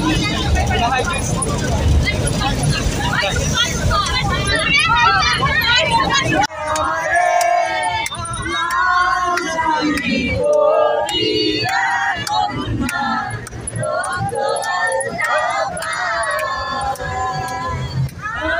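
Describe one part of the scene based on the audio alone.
Young men sing loudly together close by.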